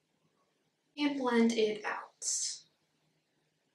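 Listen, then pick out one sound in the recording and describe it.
A young woman speaks briefly and calmly close to a microphone.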